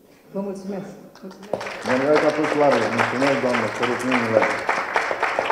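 An elderly woman speaks with emotion into a microphone.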